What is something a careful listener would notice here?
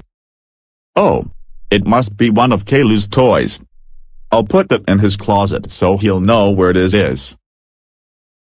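A boy speaks in a flat, synthetic computer voice.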